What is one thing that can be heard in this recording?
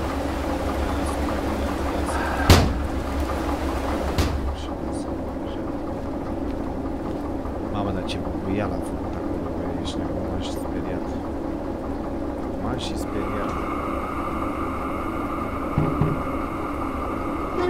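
A diesel locomotive engine idles with a low, steady rumble.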